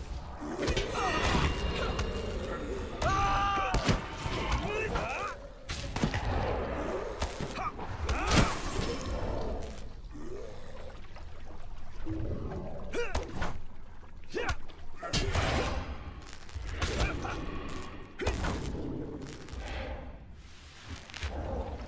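Weapons strike and clang in a fight.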